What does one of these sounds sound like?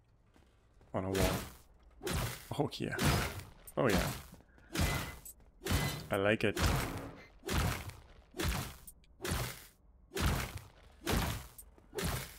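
Blows strike enemies again and again in quick, punchy bursts.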